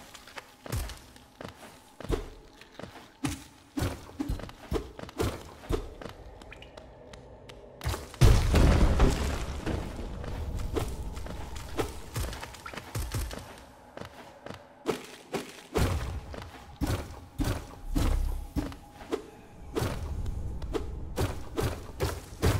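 Small quick footsteps patter and land with soft thuds.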